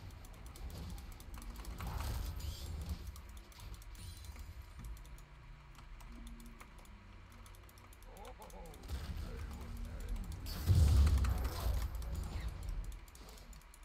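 Spell effects whoosh and crackle in a fight.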